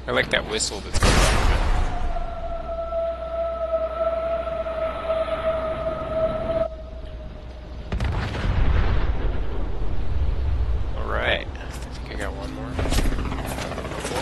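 Explosions boom and rumble.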